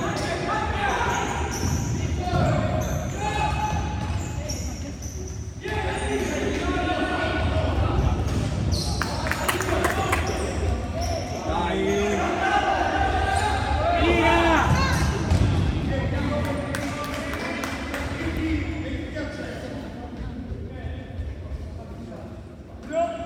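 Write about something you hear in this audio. Young players shout and call out across a large echoing hall.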